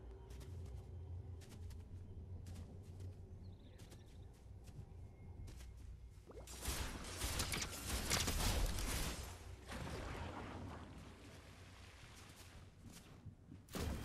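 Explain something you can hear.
Quick footsteps patter on grass.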